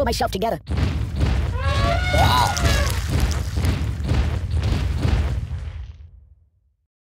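A giant elephant stomps with deep, heavy thuds.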